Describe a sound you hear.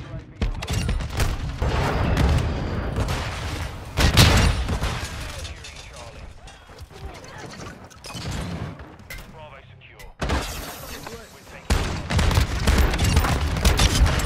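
Rifle gunfire rattles.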